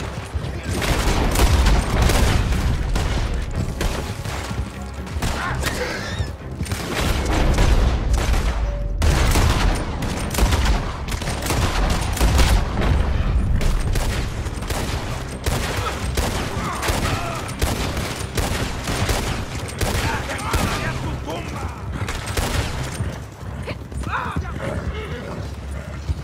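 Horses gallop with pounding hoofbeats.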